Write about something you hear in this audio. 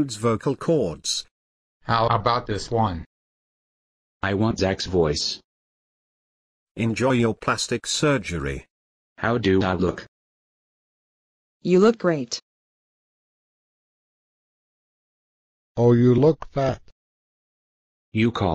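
A man speaks in short, separate phrases.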